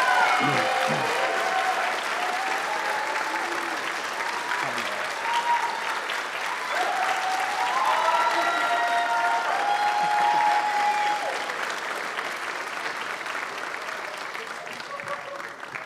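A young man speaks through a microphone in a large hall.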